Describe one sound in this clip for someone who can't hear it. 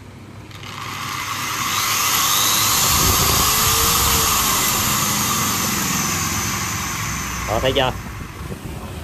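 An angle grinder whirs loudly at high speed, then winds down.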